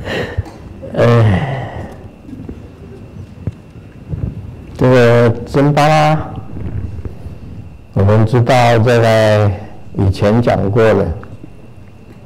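An elderly man chants loudly into a microphone, in long sung phrases.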